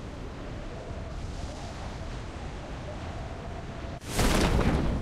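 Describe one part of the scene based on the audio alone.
Wind rushes steadily past a falling skydiver.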